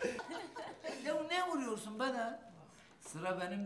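A middle-aged man speaks in a tearful, choked voice.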